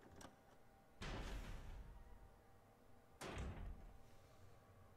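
A heavy metal door opens with a low rumble.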